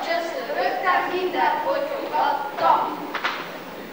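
Young children sing together.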